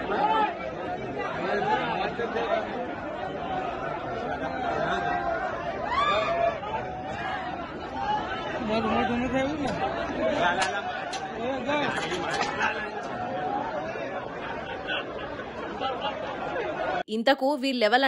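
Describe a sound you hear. A crowd of young men shouts and jostles in a noisy commotion outdoors.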